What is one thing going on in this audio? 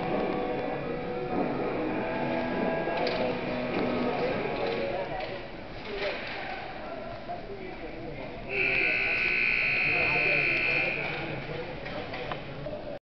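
Ice skates scrape and hiss across the ice in a large echoing rink.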